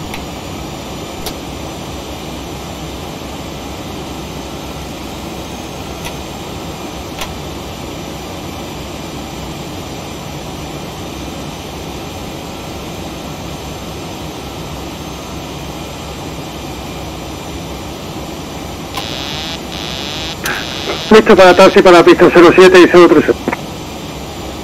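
Jet engines drone steadily throughout.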